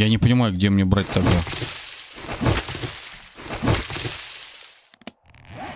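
A stone club swishes through grass with a rustle.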